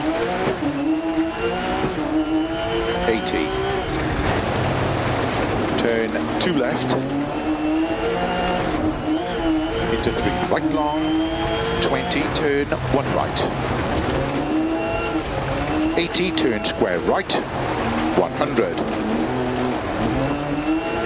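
Gravel sprays and rattles under the tyres.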